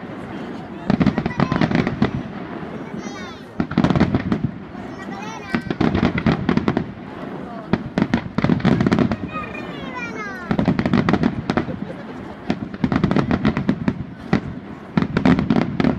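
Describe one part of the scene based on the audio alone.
Fireworks burst with loud crackling bangs.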